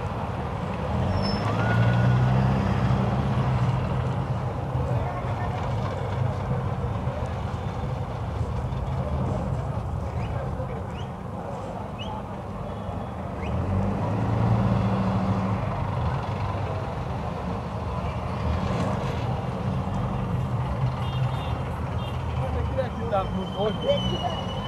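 A busy street crowd chatters outdoors.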